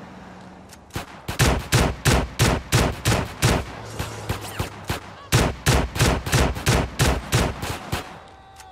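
A shotgun fires in rapid, booming shots.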